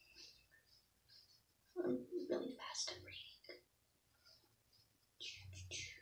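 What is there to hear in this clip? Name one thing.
A brush rustles through hair.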